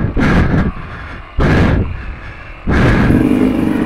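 A dirt bike engine revs in bursts up close.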